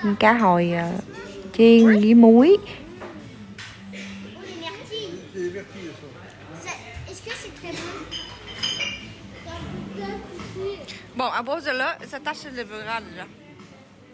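Diners chatter quietly in the background.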